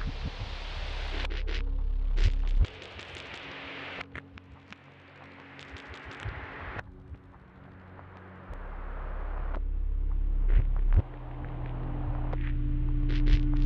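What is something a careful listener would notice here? Wind gusts roar loudly outdoors.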